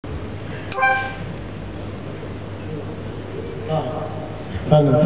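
An elderly man speaks into a microphone, heard through a loudspeaker in an echoing hall.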